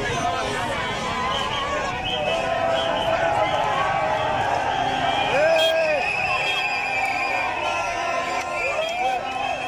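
A large crowd of men and women shouts and chants loudly outdoors.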